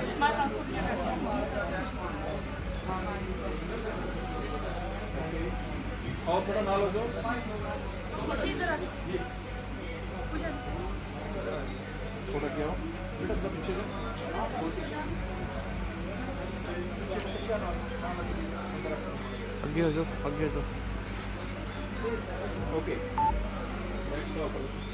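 Several men and women chat and talk nearby.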